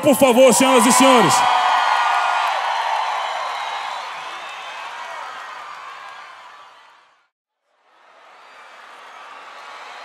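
A large crowd cheers and applauds in a big hall.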